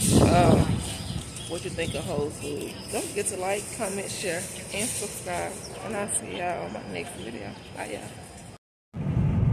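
A young woman talks with animation close to the microphone.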